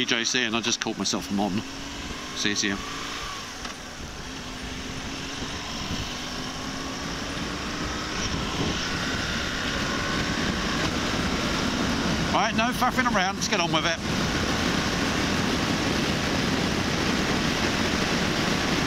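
A motorcycle engine hums and rises in pitch as the bike speeds up.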